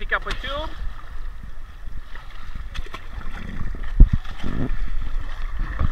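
Water splashes as a hand paddles through it.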